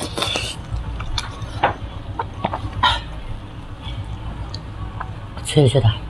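A young woman chews and slurps food wetly, close to a microphone.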